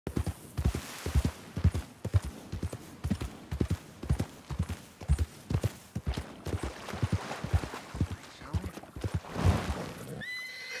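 A horse's hooves thud steadily as it trots over soft ground.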